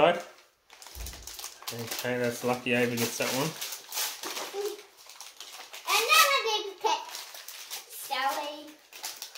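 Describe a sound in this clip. Plastic foil packets crinkle and rustle.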